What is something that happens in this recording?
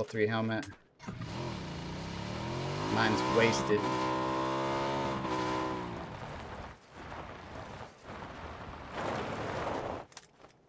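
A motorbike engine starts and revs steadily.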